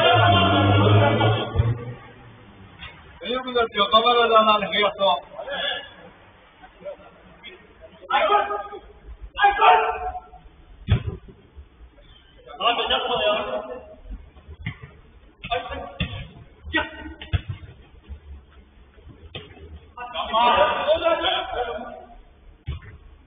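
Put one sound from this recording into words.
Men shout to each other across a large echoing indoor pitch.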